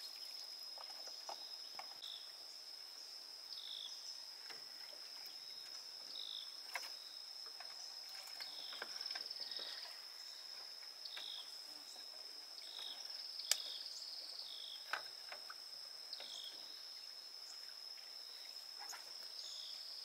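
Wooden poles knock against a boat now and then.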